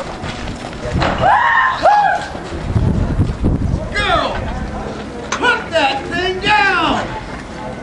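Women cry out loudly in high voices.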